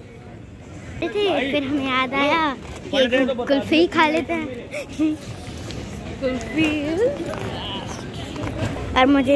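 A girl talks close by.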